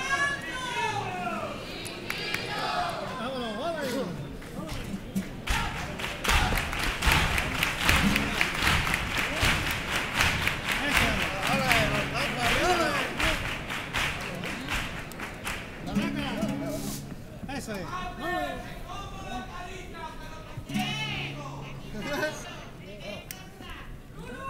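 Young performers sing and speak with animation through loudspeakers in a large echoing hall.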